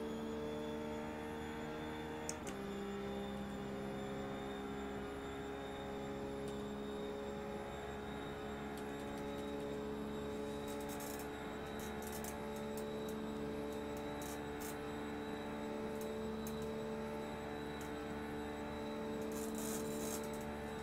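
A racing car engine drones at speed, dropping in pitch once at a gear change.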